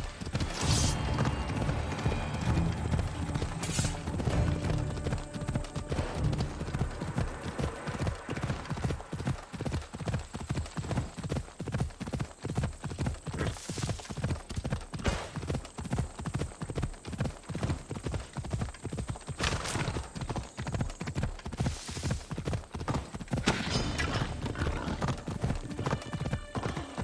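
A horse gallops in quick, steady hoofbeats.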